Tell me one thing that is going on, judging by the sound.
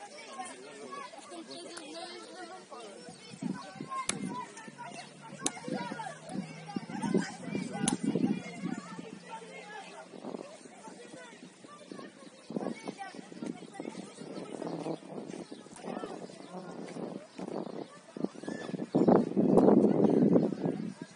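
A crowd of spectators chatters in the distance, outdoors.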